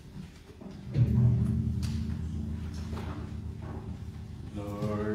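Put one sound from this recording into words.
A guitar plays sustained notes.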